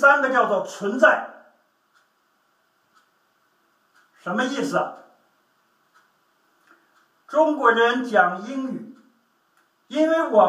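A middle-aged man speaks calmly in short bursts with pauses, close by.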